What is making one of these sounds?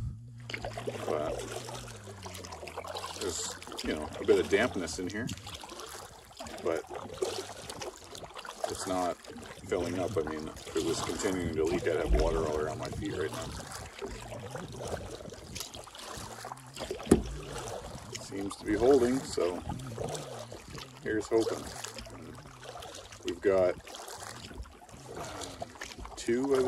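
A canoe paddle splashes in water.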